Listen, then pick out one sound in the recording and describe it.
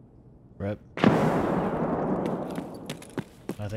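A gunshot booms and echoes away.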